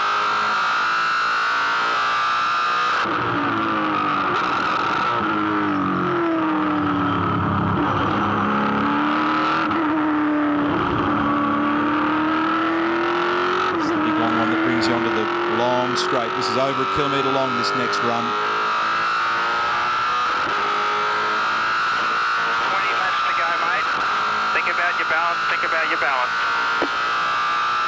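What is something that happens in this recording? A race car engine roars loudly at high revs, rising and falling as the car shifts gears.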